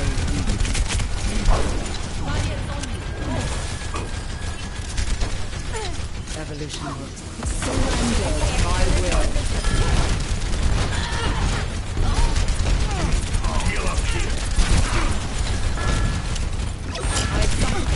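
Game gunfire fires in rapid bursts.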